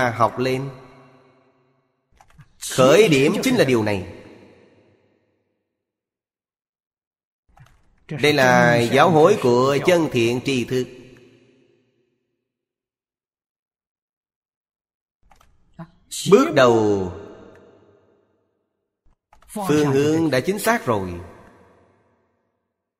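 An elderly man speaks calmly and slowly into a microphone, in short phrases with long pauses.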